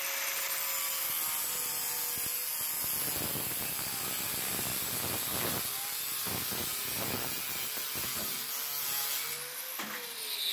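An angle grinder cuts through metal with a loud, harsh whine.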